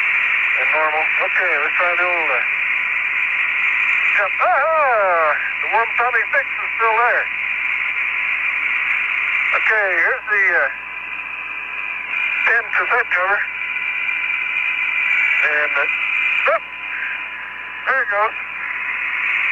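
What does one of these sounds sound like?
A man speaks in short bursts over a hissing radio link.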